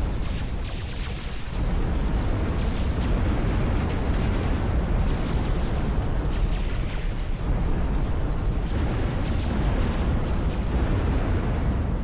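Weapons fire and explosions rumble in a distant battle.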